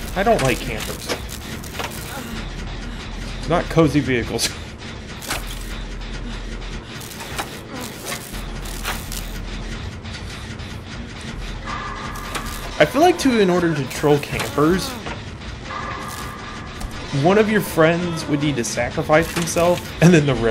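A generator rattles and clanks while being repaired.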